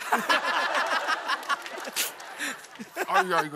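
A young woman laughs loudly among a crowd.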